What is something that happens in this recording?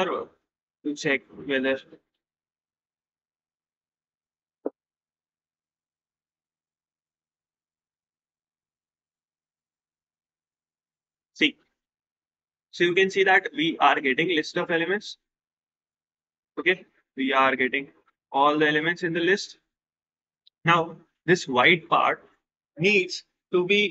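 A young man talks calmly into a close microphone, with pauses.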